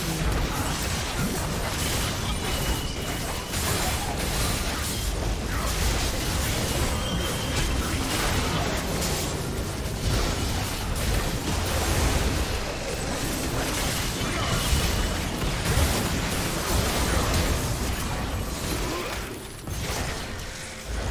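Spell blasts and weapon hits crackle and boom in a busy video game battle.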